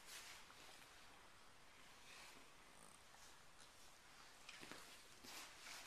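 Clothing rustles and squeaks as a toddler scrambles about.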